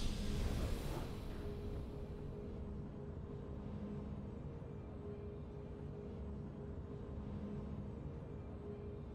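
Soft game music plays steadily.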